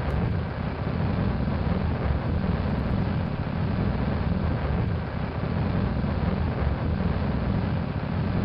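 Rocket engines roar in a deep, steady rumble.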